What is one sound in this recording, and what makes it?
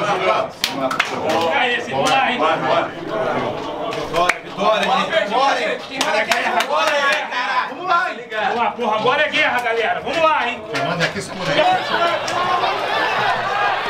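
Several men talk and chatter close by in a small echoing room.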